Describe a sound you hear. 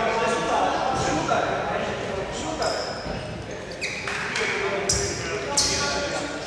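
Sneakers squeak sharply on a hardwood court in a large echoing hall.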